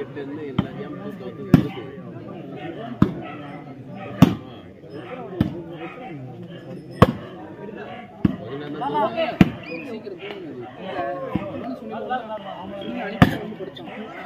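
Players kick a ball with sharp thuds.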